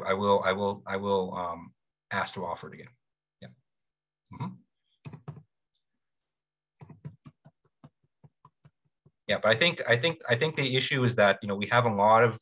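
A young man speaks calmly through a computer microphone, pausing now and then.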